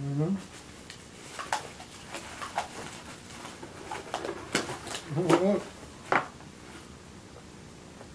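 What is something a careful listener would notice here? Plastic packaging crinkles and rustles.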